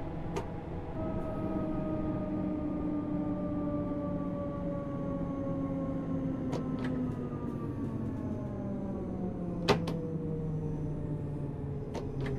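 An electric train motor whines, its pitch slowly falling as the train slows.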